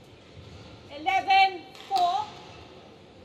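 A young woman shouts out briefly in a large echoing hall.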